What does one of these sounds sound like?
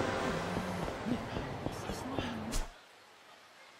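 Footsteps walk along a paved street.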